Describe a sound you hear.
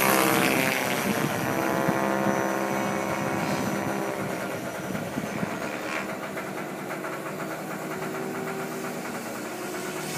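A jet plane roars overhead and slowly fades into the distance.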